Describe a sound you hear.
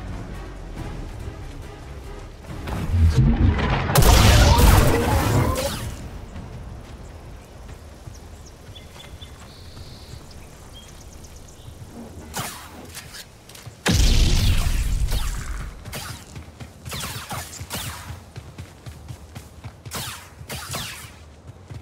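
A lightsaber hums and swooshes as it swings.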